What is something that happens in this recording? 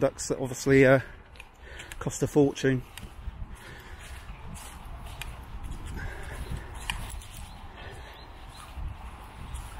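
A dog trots through dry grass and undergrowth, rustling softly.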